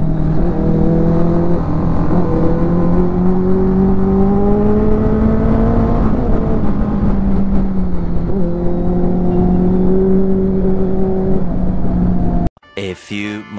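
A motorcycle engine hums steadily up close and rises and falls in pitch.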